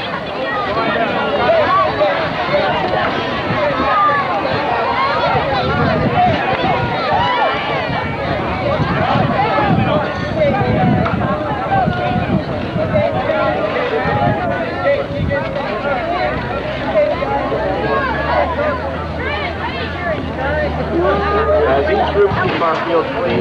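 A crowd of children and adults chatter and call out outdoors.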